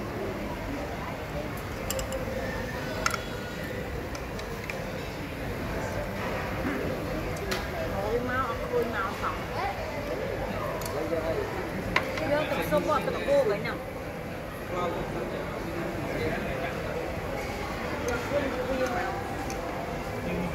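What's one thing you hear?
Young women chat and laugh nearby.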